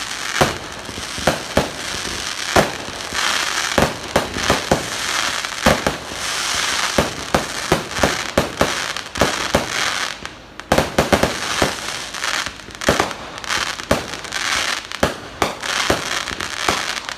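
Fireworks fizz and hiss as sparks shower.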